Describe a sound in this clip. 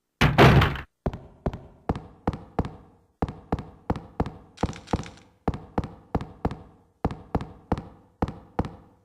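Footsteps echo steadily along a hard corridor.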